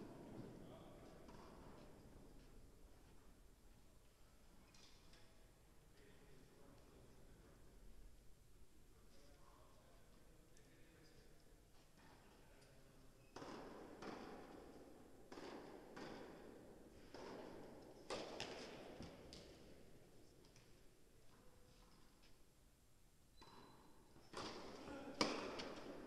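Sneakers squeak and shuffle on the court.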